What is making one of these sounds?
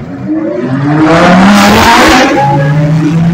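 A race car engine roars as it drives slowly past.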